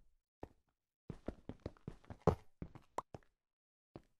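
Stone crumbles and cracks as a block is broken.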